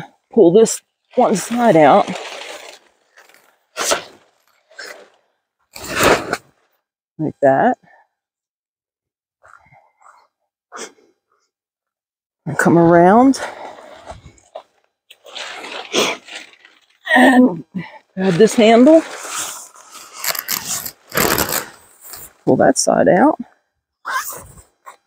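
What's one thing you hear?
Tent fabric rustles and crinkles as it is handled.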